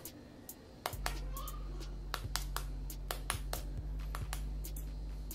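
A knife taps sharply against an eggshell, cracking it.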